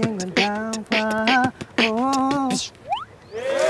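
A young man sings a short melody loudly, close by.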